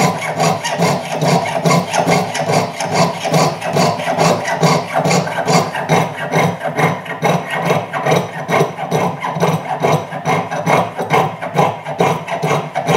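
A fine saw rasps back and forth through metal in quick, steady strokes.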